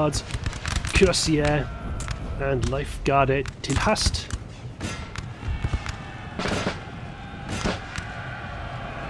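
Musket volleys crack and pop in rapid bursts.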